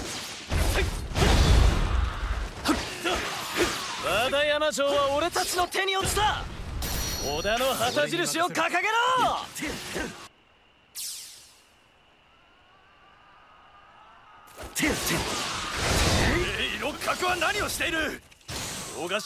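Swords slash and clash in a noisy battle.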